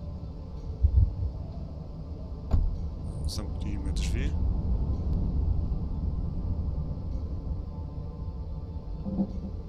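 Wind blows and rumbles steadily outside.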